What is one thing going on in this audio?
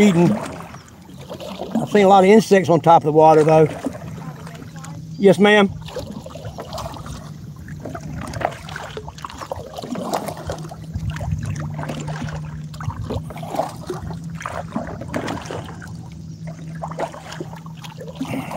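Water laps gently against the hull of a boat.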